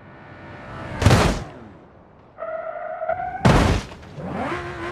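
A heavy crash booms.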